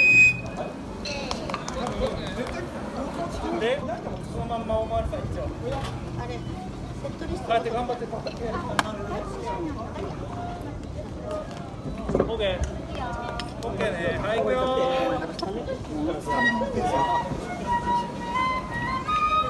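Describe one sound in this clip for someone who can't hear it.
Wooden sticks knock together sharply.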